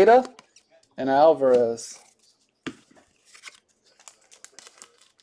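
Cards and cardboard rustle and tap as they are handled.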